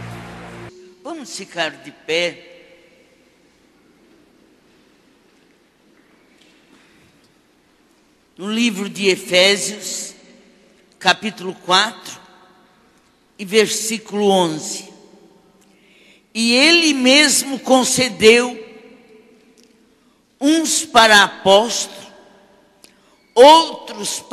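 An elderly woman speaks slowly through a microphone, pausing between phrases.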